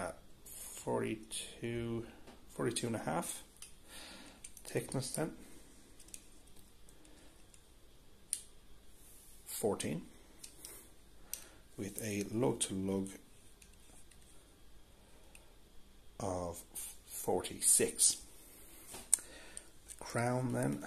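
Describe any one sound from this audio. A metal watch bracelet clinks softly as it is handled.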